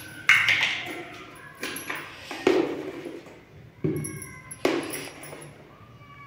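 Spices tap and scatter into a metal bowl.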